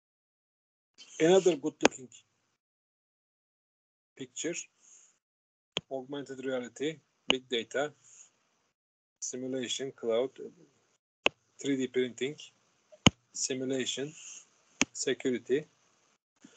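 An elderly man lectures calmly over an online call, speaking in short phrases with pauses.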